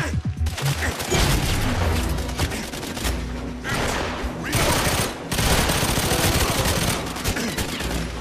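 Gunshots fire in quick bursts, close by.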